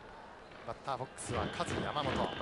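A baseball smacks into a catcher's leather mitt.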